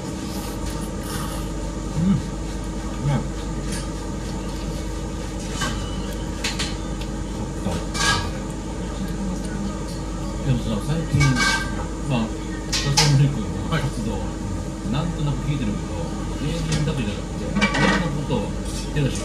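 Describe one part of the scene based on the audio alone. Two men slurp noodles loudly.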